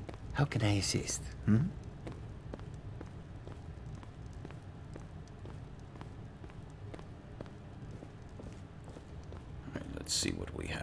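Footsteps walk steadily across a stone floor.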